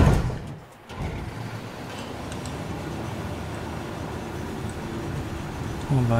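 An armoured vehicle's engine rumbles steadily as it drives.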